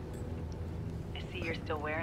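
A woman speaks calmly through a headset microphone.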